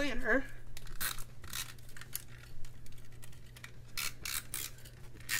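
A tape roller scrapes across paper in short strokes.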